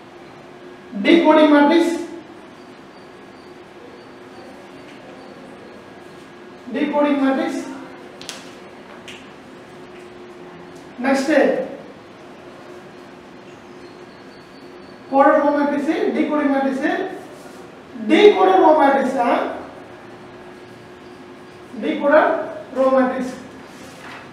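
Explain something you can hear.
A man speaks in short bursts, calmly explaining.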